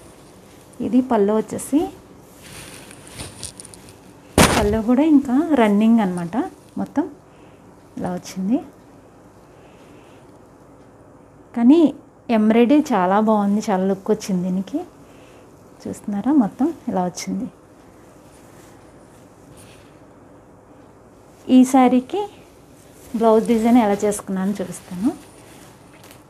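A woman talks calmly and close by, in bursts with pauses.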